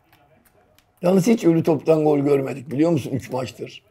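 Men talk with animation, heard through microphones.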